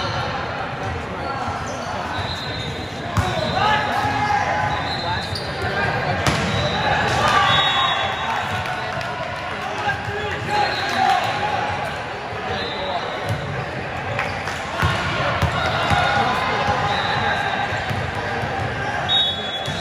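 A crowd of spectators chatters and cheers, echoing in a large hall.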